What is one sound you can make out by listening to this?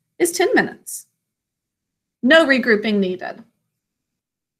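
A woman speaks calmly in short phrases, close to the microphone.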